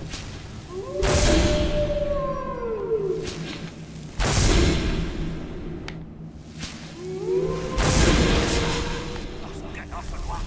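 A fire spell whooshes and roars in short bursts.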